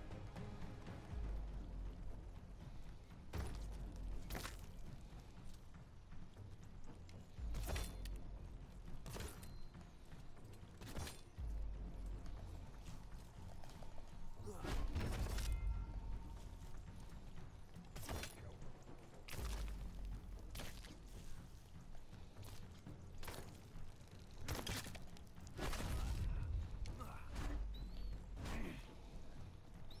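Footsteps thud on soft ground as a character runs.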